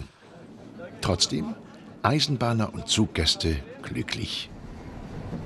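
A man speaks cheerfully up close.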